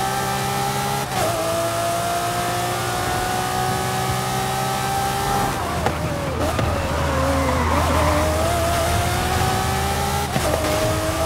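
A V12 sports car engine cuts briefly as it upshifts.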